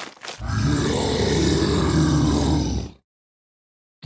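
A dinosaur roars loudly.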